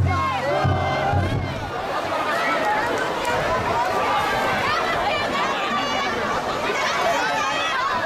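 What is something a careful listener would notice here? A large outdoor crowd chatters and calls out all around.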